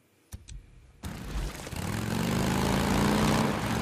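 A motorcycle engine rumbles as it rides along.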